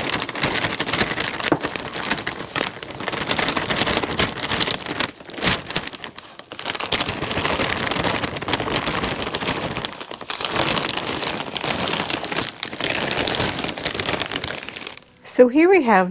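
Potting soil pours from a bag and rustles steadily.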